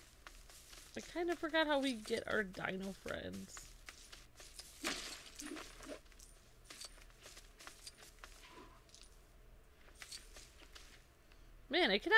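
Small coins jingle and chime in quick bursts.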